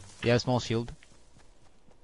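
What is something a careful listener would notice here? A pickaxe swings through the air with a whoosh.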